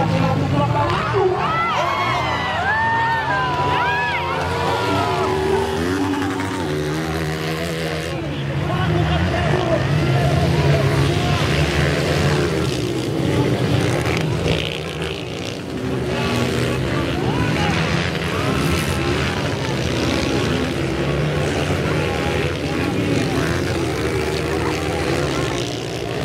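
Dirt bike engines rev and whine loudly nearby, outdoors.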